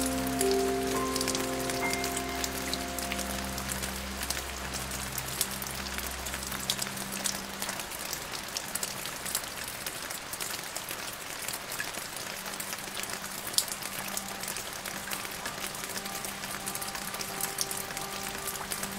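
Rain falls steadily and patters on branches and leaves.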